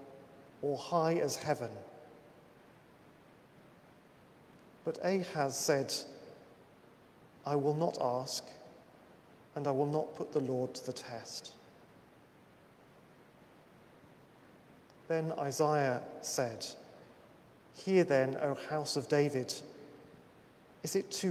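A man speaks slowly and solemnly in short phrases, echoing in a large hall.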